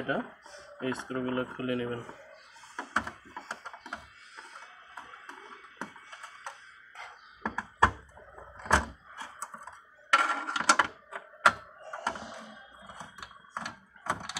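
A screwdriver clicks and scrapes against metal parts.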